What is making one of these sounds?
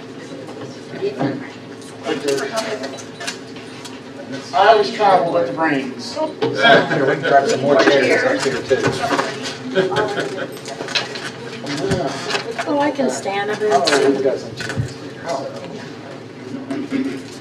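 Several men and women talk and laugh in an echoing room.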